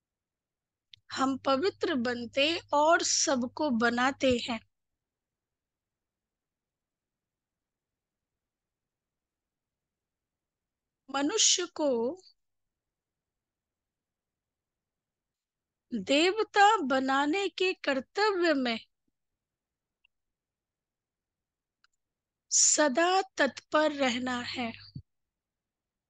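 A young woman speaks calmly into a microphone, in short phrases with long pauses.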